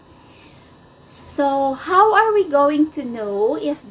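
A young woman speaks clearly and with animation into a close microphone.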